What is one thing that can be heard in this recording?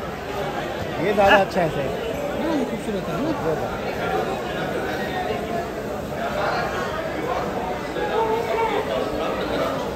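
Goats bleat nearby now and then.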